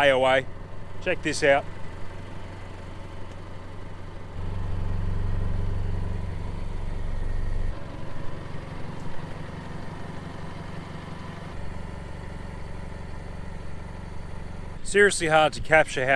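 A vehicle engine idles with a low, steady hum.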